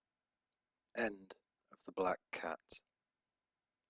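A cat meows several times.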